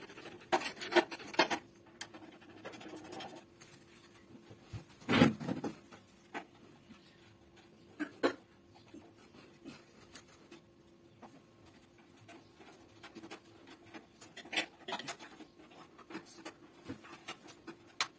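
Metal parts clink and rattle up close.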